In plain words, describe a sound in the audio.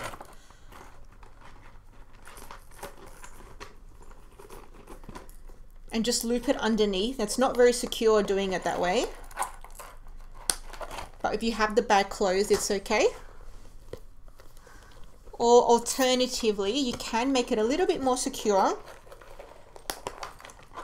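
Metal chain and clasp jingle and click as a handbag is handled.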